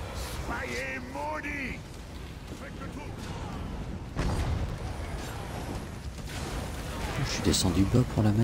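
A man speaks casually into a microphone, close by.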